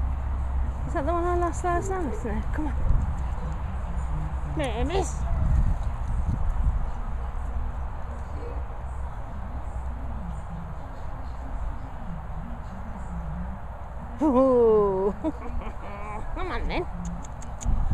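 Small dogs yelp and whine as they play.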